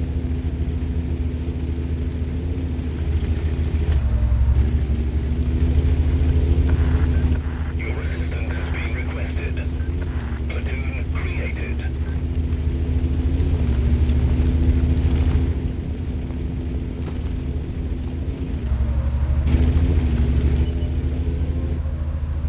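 A heavy tank engine rumbles low and steadily, swelling as it drives.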